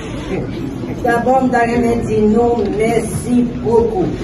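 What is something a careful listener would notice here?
A woman speaks into a microphone, reading out clearly.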